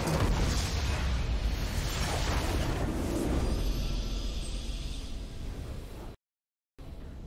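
A loud explosion booms and rumbles, then slowly fades.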